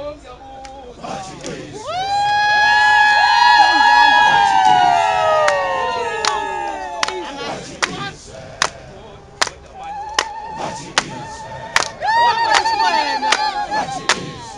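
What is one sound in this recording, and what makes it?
A large crowd of men and women sings and ululates loudly outdoors.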